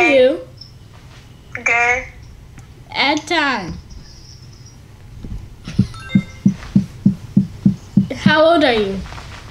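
A woman speaks animatedly through an online call.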